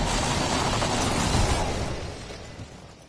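A zipline whirs loudly as a character slides down it.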